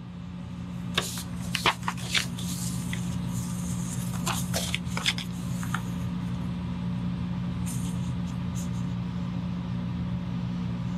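Sheets of paper rustle and flap as they are turned.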